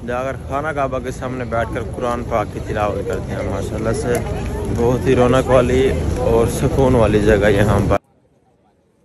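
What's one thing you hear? A young man chants melodically, close to the microphone.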